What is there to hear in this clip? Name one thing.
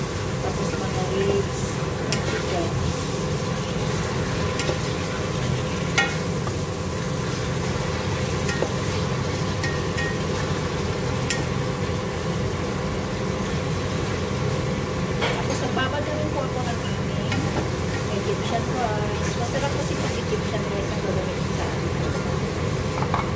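Meat sizzles steadily in a hot pot.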